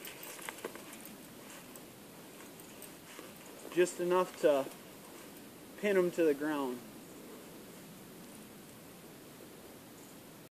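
A dog scuffles through dry leaves.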